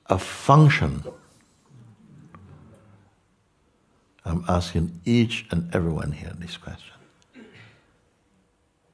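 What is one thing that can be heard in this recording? An elderly man speaks calmly and with pauses, close to a microphone.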